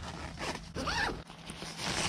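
A tent zipper is pulled open.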